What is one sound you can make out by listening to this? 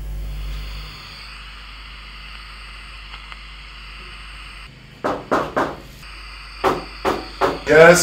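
A portable radio hisses with static.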